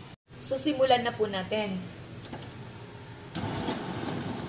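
A stove control knob clicks as it is turned.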